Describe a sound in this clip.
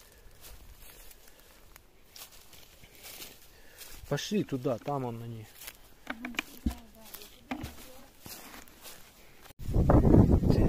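Footsteps crunch through dry grass and twigs.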